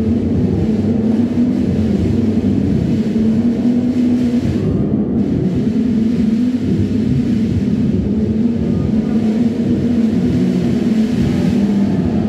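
Electronic music plays through loudspeakers.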